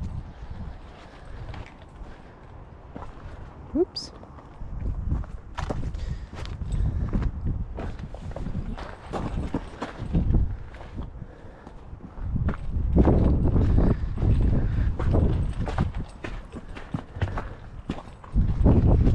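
Footsteps crunch on rocky gravel.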